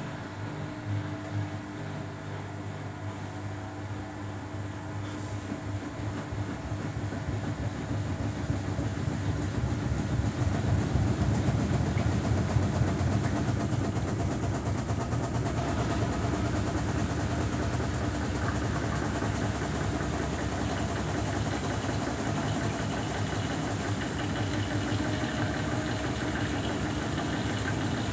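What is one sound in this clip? A front-loading washing machine's drum spins, speeding up, with a motor whine and rumble.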